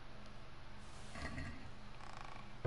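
A wooden chest lid thuds shut.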